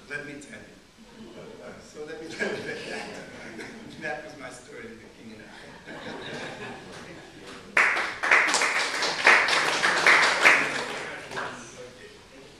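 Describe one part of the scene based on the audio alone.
A man speaks into a microphone to an audience.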